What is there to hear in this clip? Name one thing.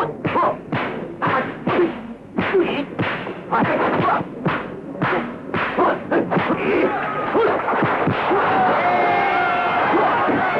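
A large crowd cheers and shouts, growing louder.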